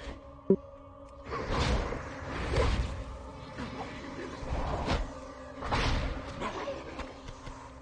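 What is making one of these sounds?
Blows land with dull thuds.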